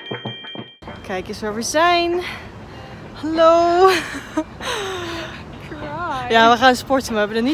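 A young woman talks and laughs with animation close to the microphone.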